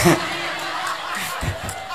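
A crowd laughs.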